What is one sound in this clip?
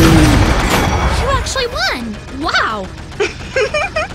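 A triumphant fanfare plays in a video game.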